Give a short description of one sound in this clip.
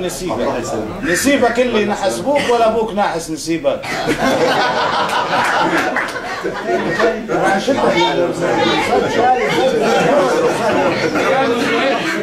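A crowd of men talks and cheers in the background.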